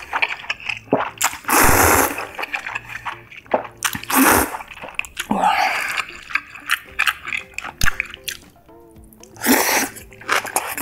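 A young woman chews wetly close by.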